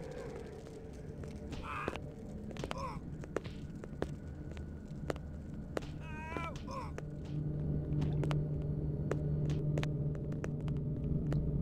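Footsteps tap on a stone floor in an echoing tunnel.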